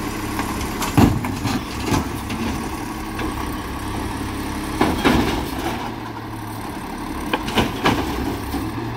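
A trash bin bangs and clatters against a truck's hopper.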